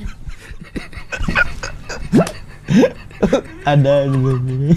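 Two men laugh loudly.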